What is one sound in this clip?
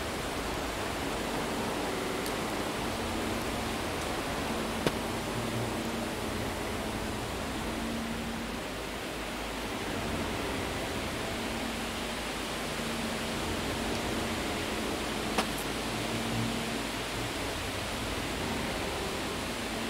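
Wind blows steadily with a low, eerie hum.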